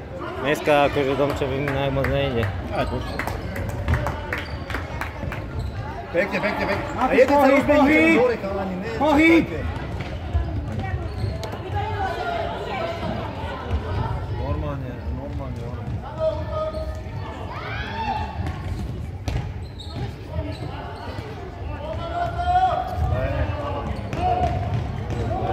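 Children shout and call out across a large echoing hall.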